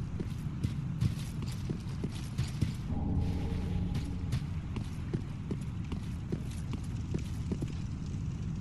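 Footsteps clatter on stone.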